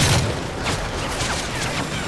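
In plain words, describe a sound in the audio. A rifle magazine clicks as it is swapped.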